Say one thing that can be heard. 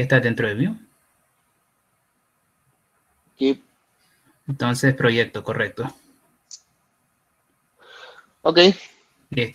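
A man speaks calmly into a headset microphone, with pauses.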